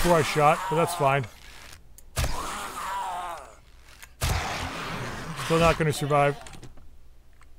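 A zombie growls and snarls up close.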